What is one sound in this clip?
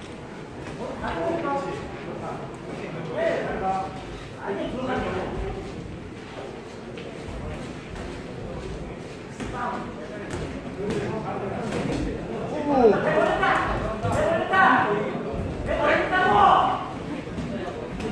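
Boxing gloves thud against a body in a large echoing hall.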